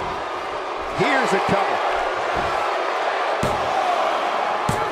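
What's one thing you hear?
A referee slaps the mat to count.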